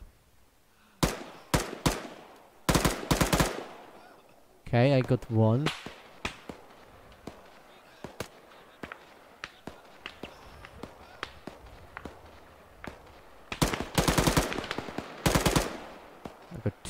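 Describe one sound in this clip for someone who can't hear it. Bullets strike metal close by in sharp, rapid cracks.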